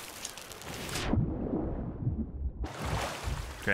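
Water splashes and the sound turns muffled, as if heard from under the surface.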